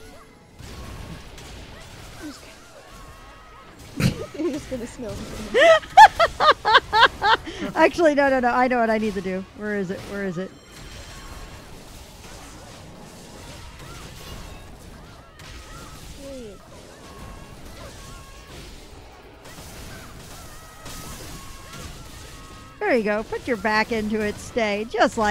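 Game spells crackle and whoosh in a fight.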